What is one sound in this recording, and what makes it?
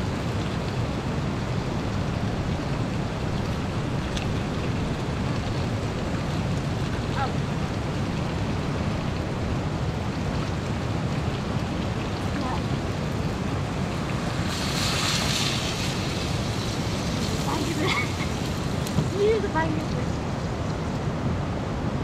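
A fast river rushes steadily nearby.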